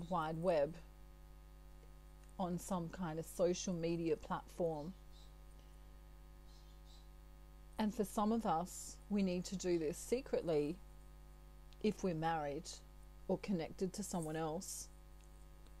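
A middle-aged woman speaks calmly and close to the microphone, in short phrases with pauses.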